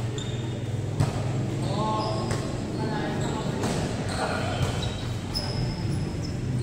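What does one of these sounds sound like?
A volleyball is struck with a hand.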